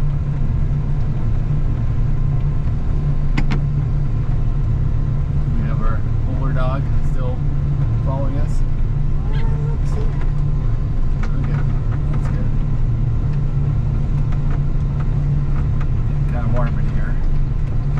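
A snowplow blade scrapes and pushes through snow.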